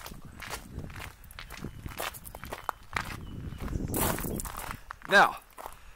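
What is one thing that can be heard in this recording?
Footsteps crunch on gravel.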